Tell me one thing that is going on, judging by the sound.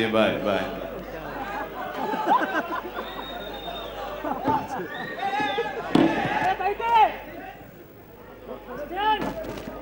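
A crowd of people chatter and call out.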